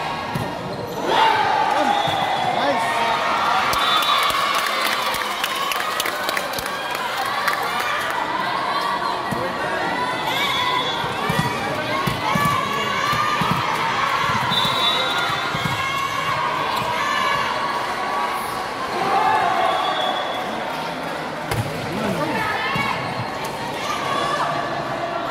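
Young women call out to each other as they play.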